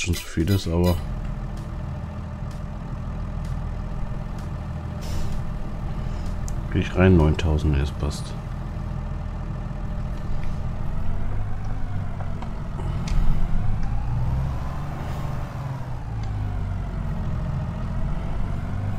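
A tractor engine rumbles steadily and revs up and down.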